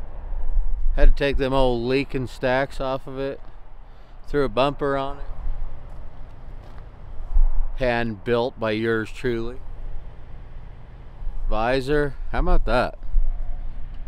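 A man speaks calmly and close up, outdoors.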